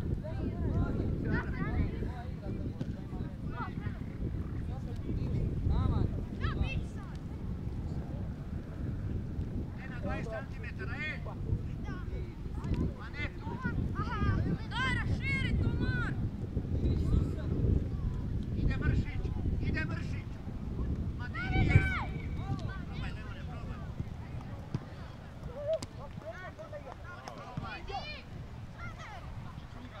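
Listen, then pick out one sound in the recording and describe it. Young men shout and call to each other from a distance across an open field.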